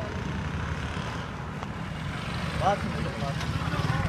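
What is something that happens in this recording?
A motorcycle engine putters past close by.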